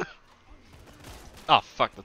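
A rifle fires a few shots.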